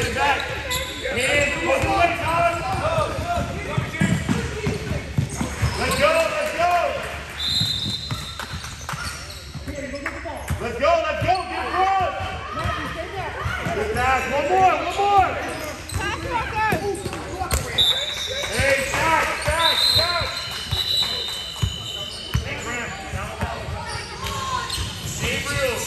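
A crowd of children and adults shouts and calls out nearby in an echoing hall.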